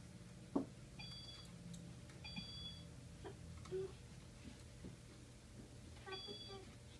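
A toy learning laptop plays short electronic beeping tones.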